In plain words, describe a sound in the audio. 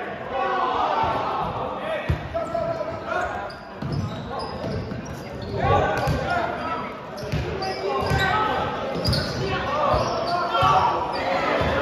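Sneakers squeak on the hardwood floor.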